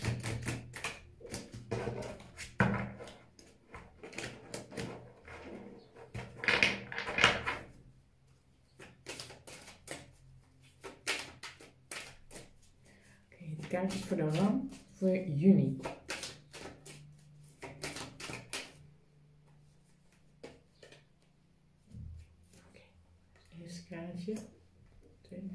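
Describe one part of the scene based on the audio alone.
Cards shuffle and slap together in a woman's hands.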